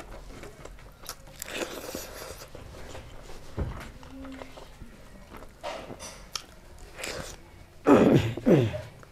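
Fingers squish and mix rice close to a microphone.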